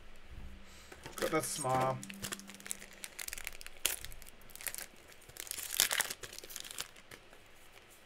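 Foil wrapping crinkles and tears as hands open a card pack.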